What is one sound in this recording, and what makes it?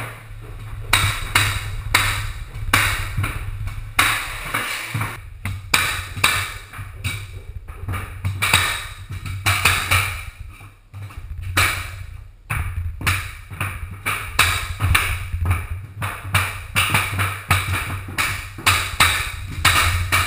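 A mallet strikes a flooring nailer again and again with sharp, loud bangs.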